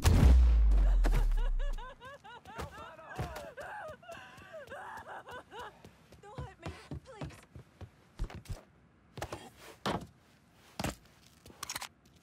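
Footsteps thud on a hard floor and wooden stairs.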